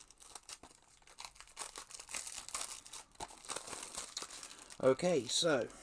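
Plastic packaging rustles and clicks in hands.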